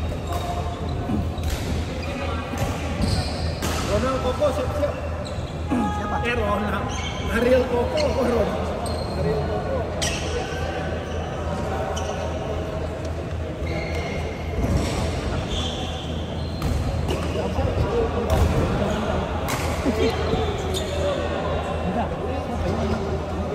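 Several people chat in the background of an echoing hall.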